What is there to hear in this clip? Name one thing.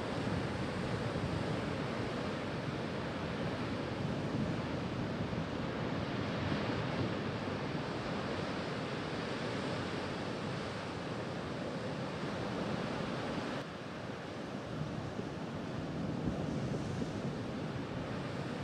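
Ocean waves crash and churn against rocky cliffs.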